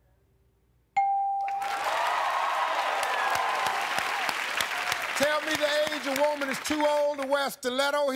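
A studio audience applauds and cheers loudly.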